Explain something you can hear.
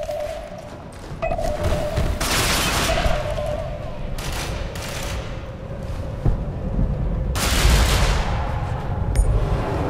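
Footsteps run over a hard floor.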